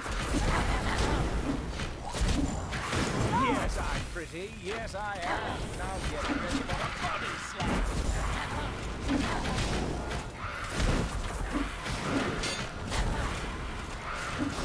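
Swords clash in a fierce battle.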